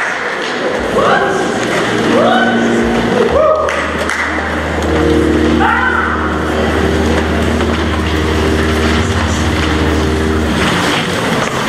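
A piano plays sustained chords.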